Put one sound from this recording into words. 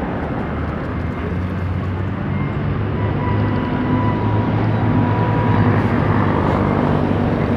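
A truck engine drones as it passes close by.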